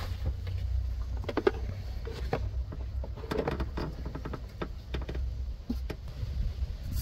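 Metal parts click and tap as gloved hands handle them.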